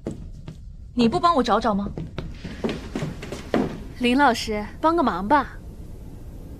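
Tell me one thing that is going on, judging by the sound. A young woman speaks sharply nearby.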